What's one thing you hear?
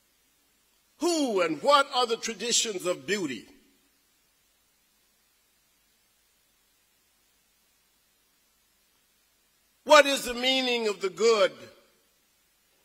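A man speaks slowly and formally through a microphone and loudspeakers in a large echoing hall.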